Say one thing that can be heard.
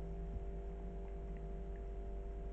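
A kitten mews softly.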